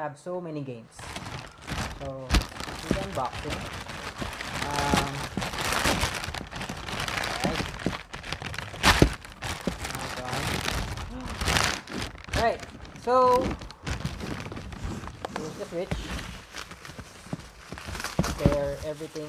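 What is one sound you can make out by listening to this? A plastic bag crinkles and rustles as it is opened.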